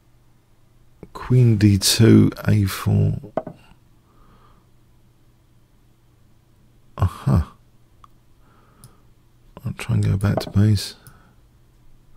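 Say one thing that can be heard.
A middle-aged man talks with animation, close to a microphone.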